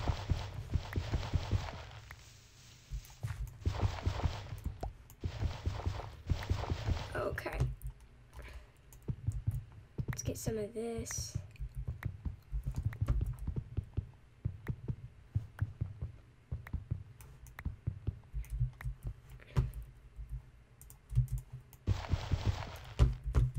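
Earth and stone crunch in quick, repeated strokes as they are dug away.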